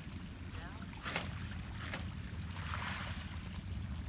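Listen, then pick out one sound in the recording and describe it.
A fishing net splashes onto the water far off.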